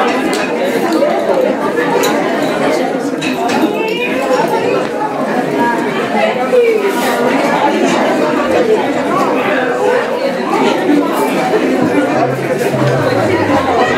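A crowd of women and children chatter close by.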